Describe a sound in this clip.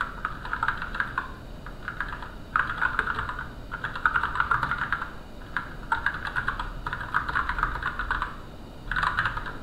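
Keys clatter rapidly on a keyboard in quick bursts.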